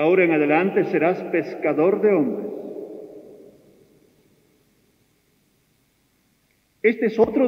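An elderly man speaks slowly and solemnly through a microphone in a large echoing hall.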